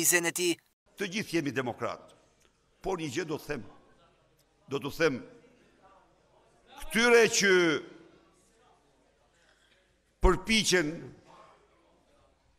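An elderly man speaks slowly and firmly into a microphone, in short phrases with pauses.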